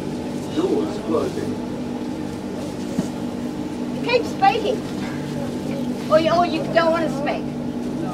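A woman talks loudly close by.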